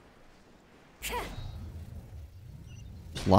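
A heavy whooshing thud sounds as a figure plunges to the ground.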